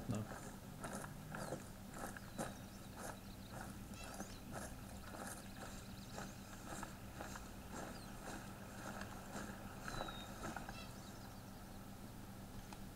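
Footsteps crunch steadily through frosty grass.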